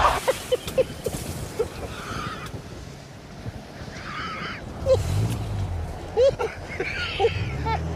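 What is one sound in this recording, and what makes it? A second man laughs in disbelief.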